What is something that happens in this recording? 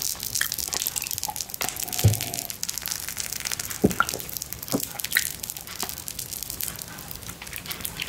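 A man sips and slurps wine.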